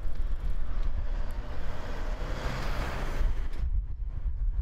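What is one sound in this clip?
A truck approaches and drives past close by.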